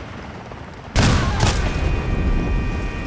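A car explodes with a loud boom.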